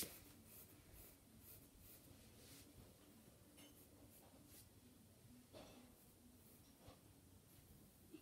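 Pencils scratch softly on paper.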